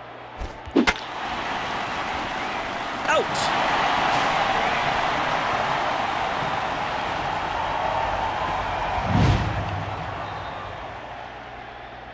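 A large stadium crowd cheers loudly.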